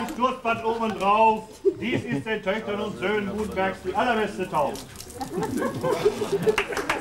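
A man speaks loudly to a gathered crowd.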